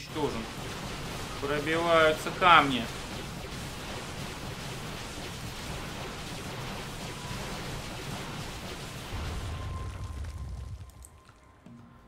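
Game battle sounds hiss and rumble in the background.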